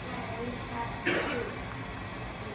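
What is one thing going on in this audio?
Pasta drops into a pan of hot oil with a soft splash.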